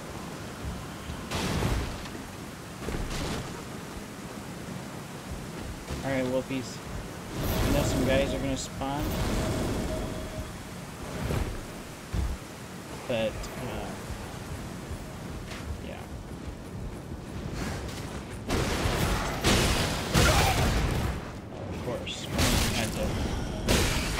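Wooden crates smash and splinter.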